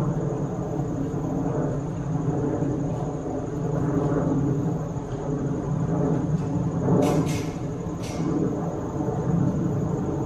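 A trampoline's springs creak faintly in the distance as a child bounces.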